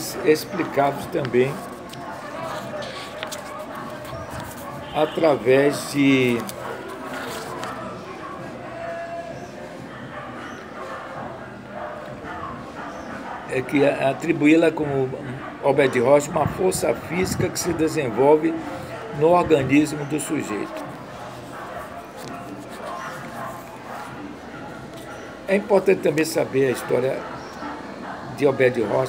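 An elderly man speaks calmly and close up, with pauses.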